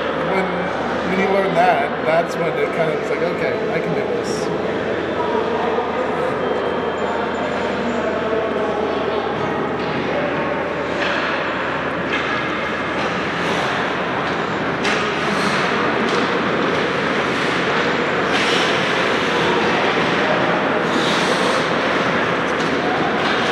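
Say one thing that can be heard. Young players chatter, echoing in a large rink.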